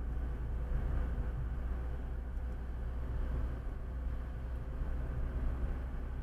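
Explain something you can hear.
A car's engine hums steadily from inside the cabin as it drives.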